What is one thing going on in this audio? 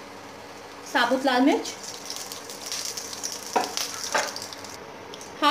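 Whole spices sizzle briefly in hot oil.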